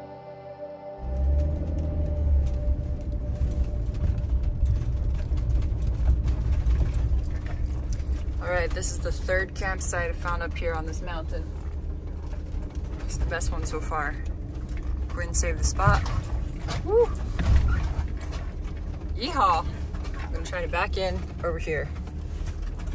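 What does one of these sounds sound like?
A vehicle rumbles along a bumpy dirt track.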